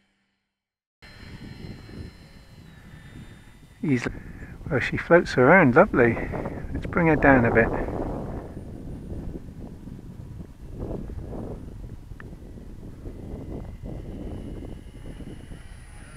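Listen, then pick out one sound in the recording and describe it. Wind rushes loudly past a small plane in flight.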